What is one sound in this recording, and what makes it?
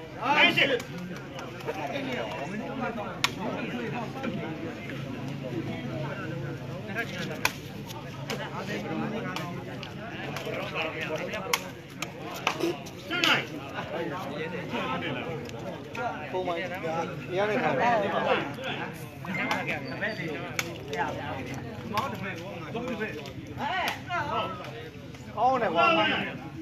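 A crowd of men and boys chatters and shouts outdoors.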